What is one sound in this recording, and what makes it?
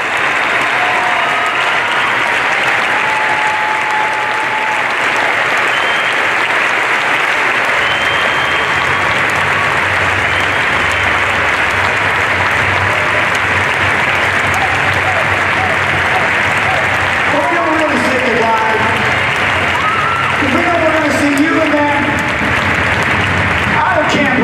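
A marching band plays brass instruments.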